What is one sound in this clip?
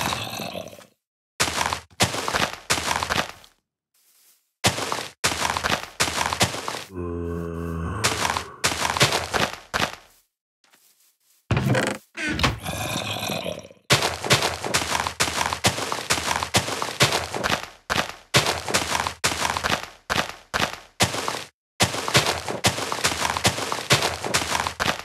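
Leafy blocks are placed one after another with quick rustling crunches.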